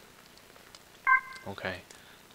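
A short electronic menu chime sounds.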